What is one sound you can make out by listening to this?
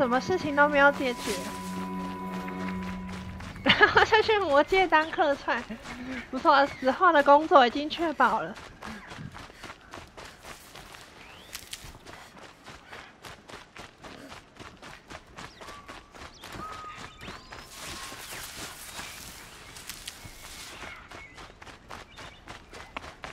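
Footsteps rustle quickly through dry leaves and undergrowth.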